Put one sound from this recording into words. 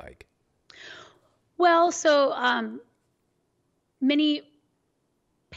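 A middle-aged woman speaks with animation into a close microphone.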